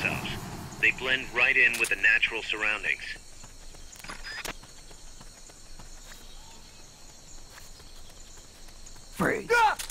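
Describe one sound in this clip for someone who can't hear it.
Footsteps patter on stone steps.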